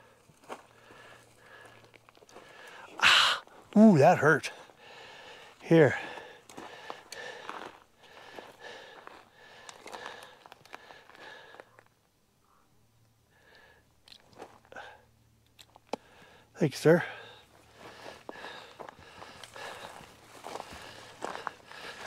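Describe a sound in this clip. Footsteps crunch on rocky, gravelly ground.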